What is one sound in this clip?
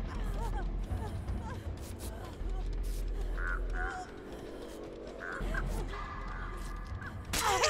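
A crow flaps and caws overhead.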